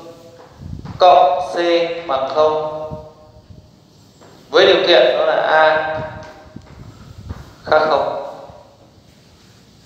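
A man speaks calmly and clearly, as if teaching.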